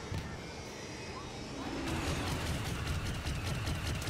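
Explosions rumble loudly.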